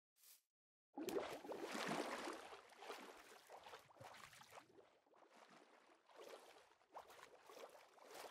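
Water splashes and bubbles while someone swims underwater.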